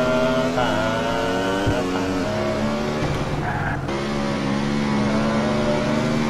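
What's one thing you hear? A motorcycle engine roars steadily, its pitch shifting as it speeds up and shifts gear.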